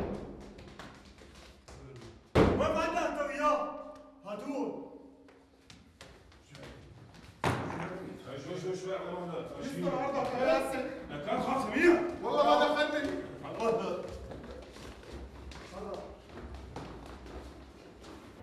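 Footsteps clatter on stairs.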